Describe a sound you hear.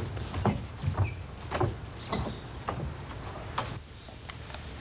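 A cord rustles and scrapes against a wooden box as it is tied.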